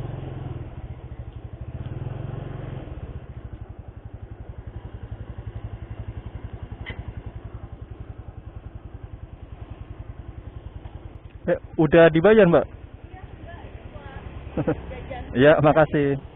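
A motorbike engine idles with a steady low putter.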